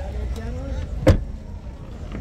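A car trunk lid pops open with a click.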